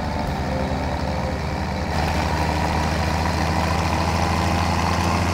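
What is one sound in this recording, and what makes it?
A tractor engine rumbles steadily and grows louder as it speeds up.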